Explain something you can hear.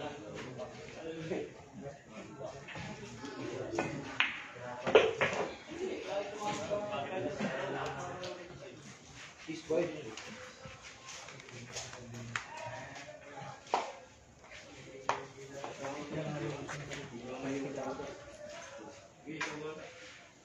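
Several men chat in the background.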